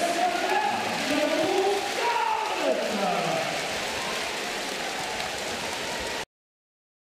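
A crowd cheers and chatters loudly in a large echoing arena.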